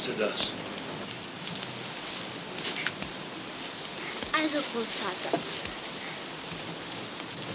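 Straw rustles as it is handled.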